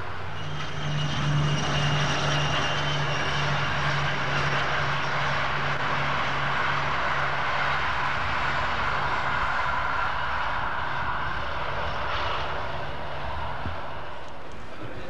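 A diesel locomotive rumbles steadily in the distance as it hauls a train past.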